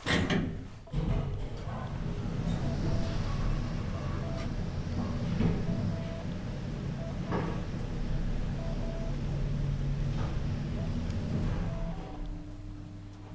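An elevator car hums steadily as it moves.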